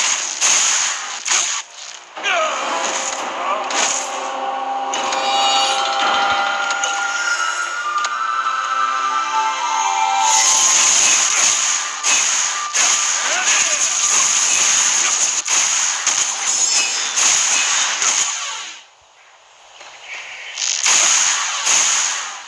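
Magical blasts and impacts burst in quick succession.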